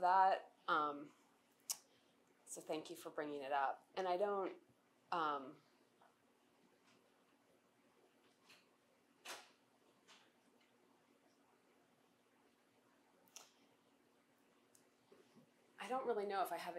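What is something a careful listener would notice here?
A middle-aged woman speaks calmly into a microphone, pausing at length between phrases.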